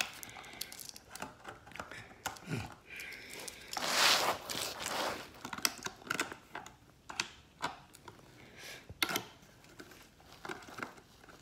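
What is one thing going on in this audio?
Clothing rustles and brushes close by as a person moves.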